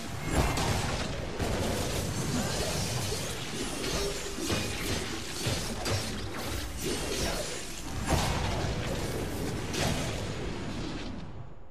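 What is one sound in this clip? Swords slash and clash in quick blows.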